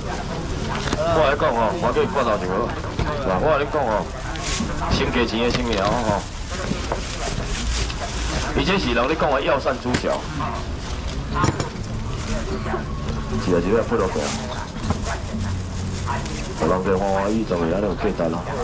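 A man calls out loudly to passers-by, close by.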